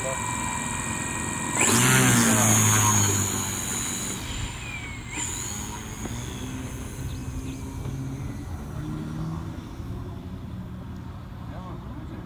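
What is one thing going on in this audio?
A model airplane's motor whines, revs up loudly, then drops in pitch and fades into the distance.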